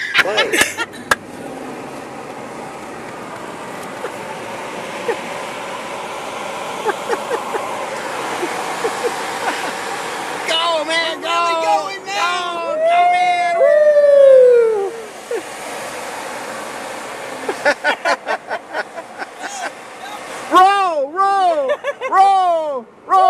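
A car engine and tyres hum steadily on the road.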